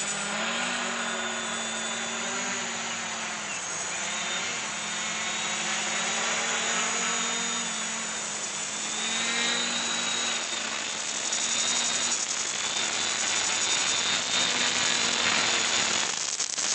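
A drone's propellers buzz steadily overhead, rising and falling in pitch as it flies and lands close by.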